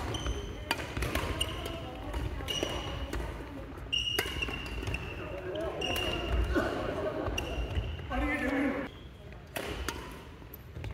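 Badminton rackets strike a shuttlecock back and forth in a large echoing hall.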